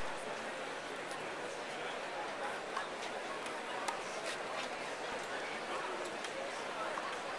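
A crowd murmurs steadily in a large open arena.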